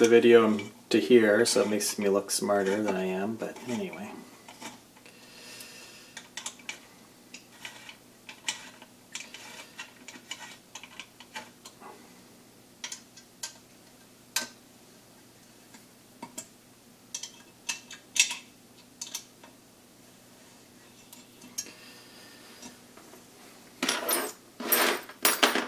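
Small parts click and tap against a metal frame.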